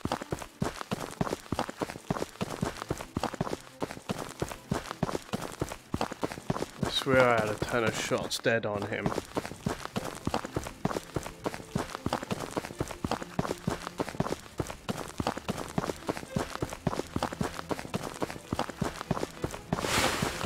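Footsteps crunch over dirt and grass.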